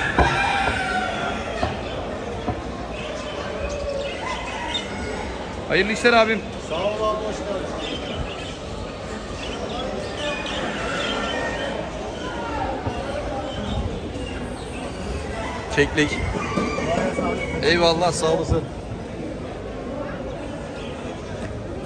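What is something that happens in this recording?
Many small birds chirp and twitter throughout.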